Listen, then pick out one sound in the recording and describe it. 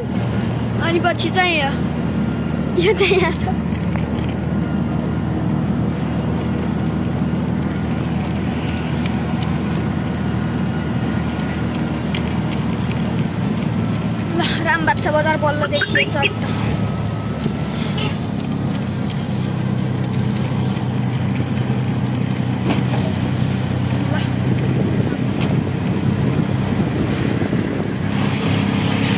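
A small motor vehicle engine drones steadily while driving.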